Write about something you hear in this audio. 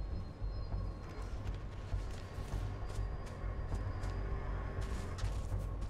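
Soft footsteps pad across grass.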